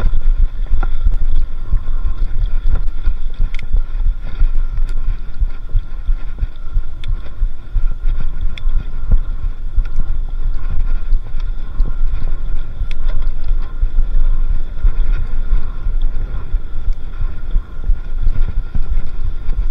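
Wind rumbles loudly past the microphone.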